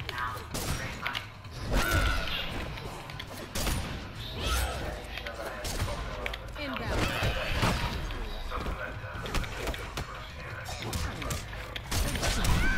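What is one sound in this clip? A fighter grunts and yells with effort.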